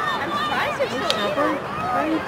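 A hockey stick strikes a ball with a sharp click.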